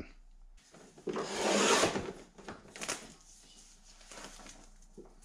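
A plastic panel rustles and scrapes.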